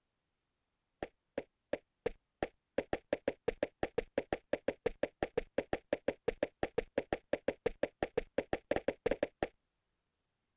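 Footsteps tap quickly and evenly on stone.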